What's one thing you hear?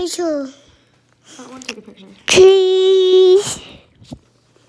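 A young child vocalizes loudly and in a drawn-out tone, close by.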